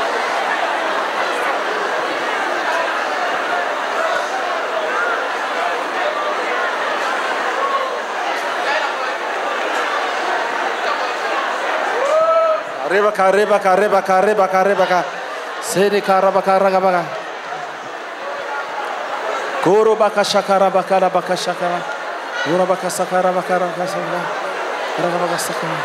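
A large crowd of women and men sings and calls out together.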